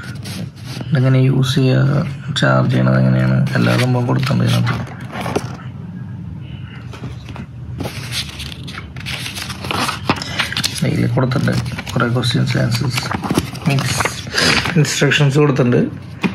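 Paper cards rustle and crinkle as they are handled.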